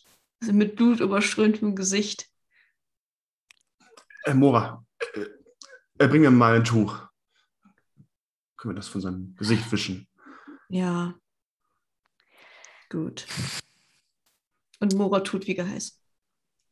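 A young woman laughs through an online call.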